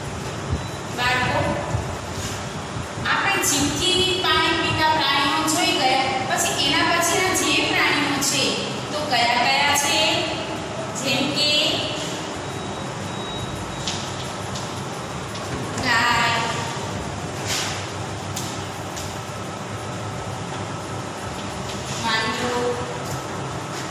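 A woman speaks clearly and steadily, as if teaching.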